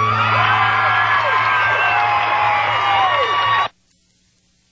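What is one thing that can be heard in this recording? An electric guitar plays bending, sustained notes loudly.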